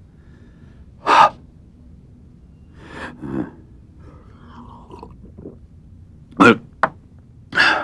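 An elderly man speaks loudly in short bursts, close by.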